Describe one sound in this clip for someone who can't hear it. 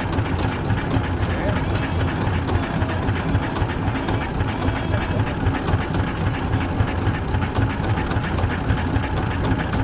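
A race car engine idles loudly with a rough, rumbling beat.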